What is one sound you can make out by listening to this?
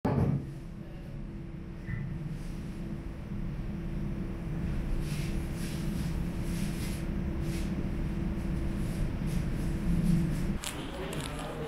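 A low hum of aircraft engines drones steadily outdoors.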